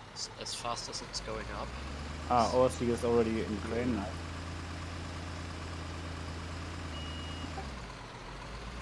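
A diesel dump truck engine rumbles as the truck drives.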